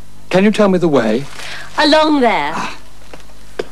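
A middle-aged man speaks cheerfully.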